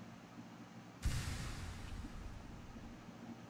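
A soft shimmering chime rings out and fades.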